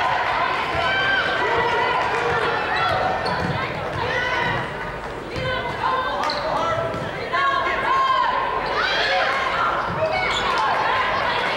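Basketball shoes squeak on a hardwood court in an echoing gym.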